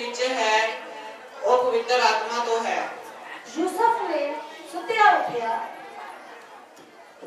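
A young man speaks with feeling through a loudspeaker in an echoing hall.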